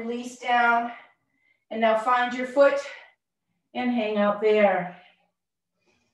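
A woman speaks calmly and gently into a close microphone, in short phrases.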